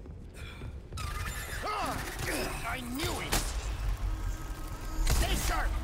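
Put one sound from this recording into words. A creature shrieks and growls loudly.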